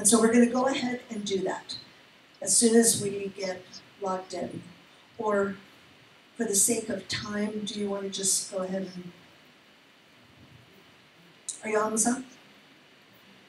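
A woman speaks calmly through a microphone in a large room.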